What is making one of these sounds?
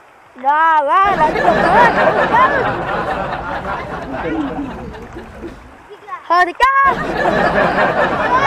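A shallow stream rushes and splashes over stones.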